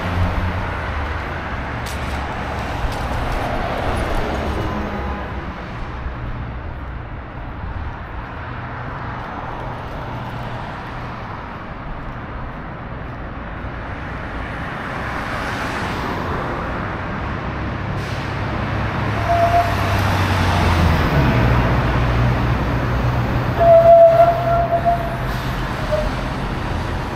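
Traffic hums steadily along a city street outdoors.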